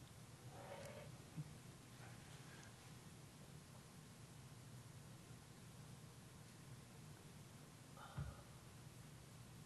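A man speaks calmly into a microphone, heard faintly over a steady hum.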